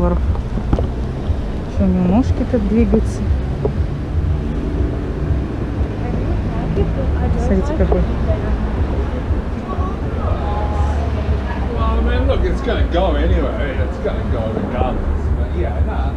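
A plastic bag rustles as it is handled.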